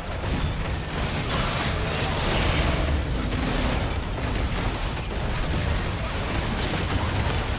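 Spell effects crackle and whoosh during a fast fight.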